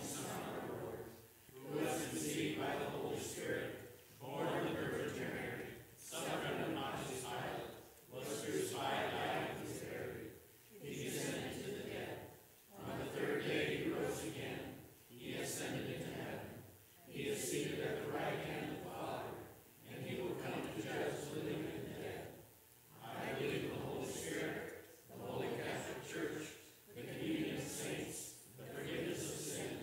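A congregation of men and women sings together in phrases, echoing in a large hall.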